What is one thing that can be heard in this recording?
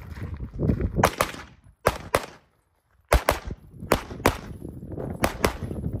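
A pistol fires quick shots a short distance away.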